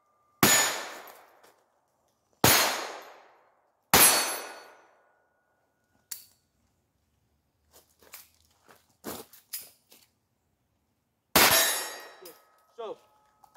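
Pistol shots ring out loudly outdoors, echoing off the trees.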